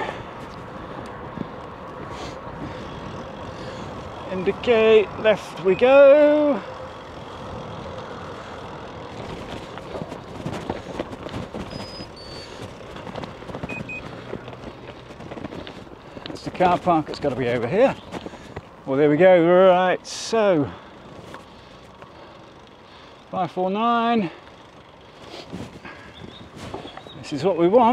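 Bicycle tyres roll and crunch over the road surface.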